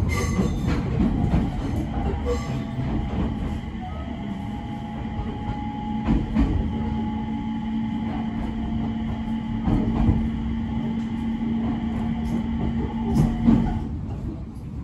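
A train's motor whines steadily, then stops.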